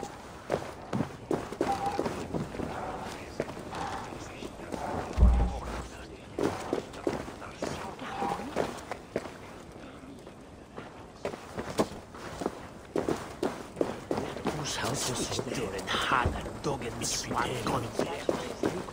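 Footsteps shuffle over a wooden floor and dirt.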